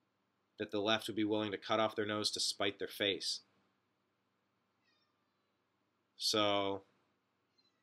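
A man talks with animation, close to a microphone.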